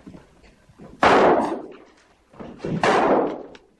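Two people scuffle and thud against each other.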